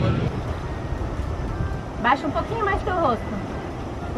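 Sea waves wash against rocks nearby.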